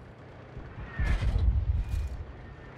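A shell hits nearby with a sharp blast.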